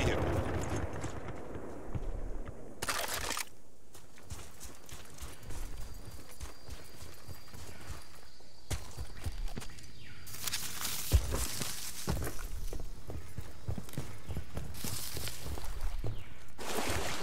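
Footsteps crunch over grass and undergrowth.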